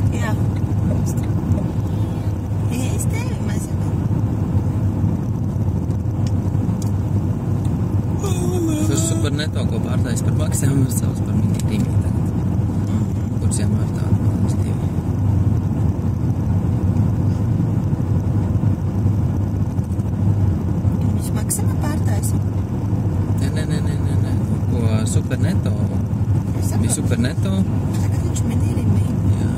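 A vehicle's engine hums low and steady as it drives along a road.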